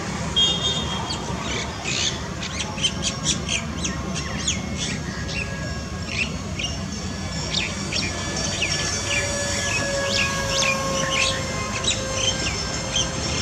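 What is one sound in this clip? A jet engine roars faintly far overhead.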